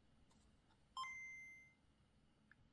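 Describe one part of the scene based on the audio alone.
A handheld game console gives a short electronic beep.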